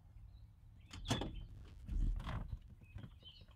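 A dog jumps in and lands with soft thumps on a padded surface.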